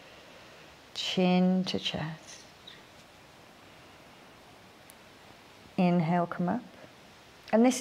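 A young woman speaks calmly and softly close by.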